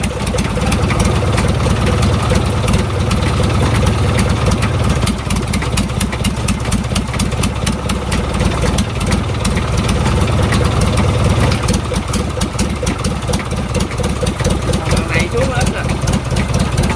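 A diesel engine runs with a loud, steady chugging rumble.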